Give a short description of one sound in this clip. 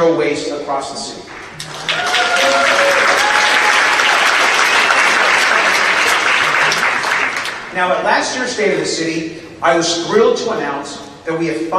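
A man speaks with energy through a microphone in a large hall.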